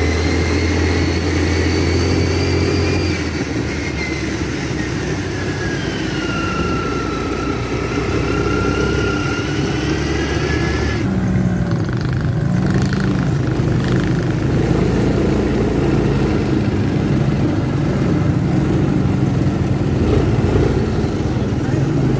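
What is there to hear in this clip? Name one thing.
Quad bike engines drone and putter nearby.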